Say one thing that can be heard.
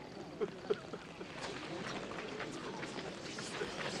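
Men murmur quietly.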